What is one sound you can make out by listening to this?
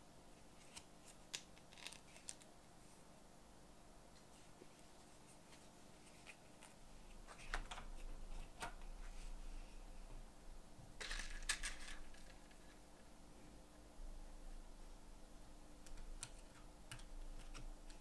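Small metal parts click softly as fingers handle them.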